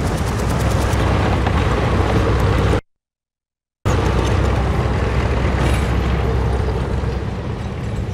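A tank engine rumbles loudly close by.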